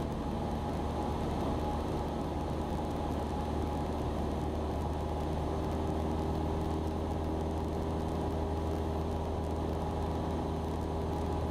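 A small plane's propeller engine drones loudly and steadily inside the cabin.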